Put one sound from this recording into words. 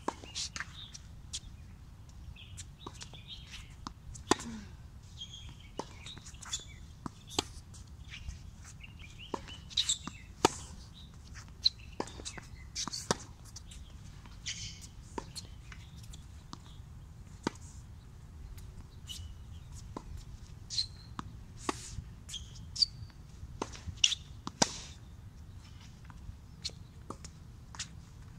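Shoes squeak and scuff on a hard court.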